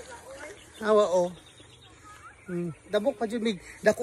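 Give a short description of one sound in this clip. A woman talks outdoors a little way off.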